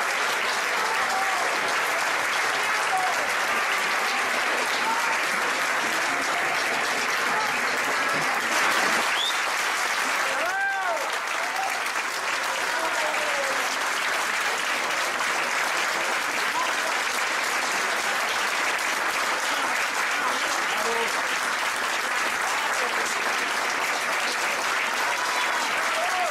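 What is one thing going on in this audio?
A large audience claps and cheers loudly.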